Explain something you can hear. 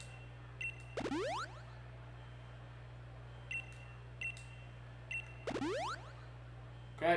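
A rising electronic chime sweeps upward as a healing item is used.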